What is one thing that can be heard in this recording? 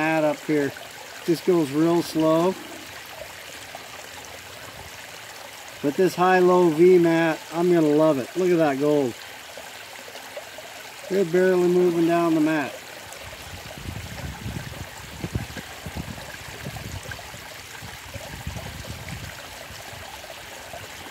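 Water trickles and splashes steadily over a ridged mat.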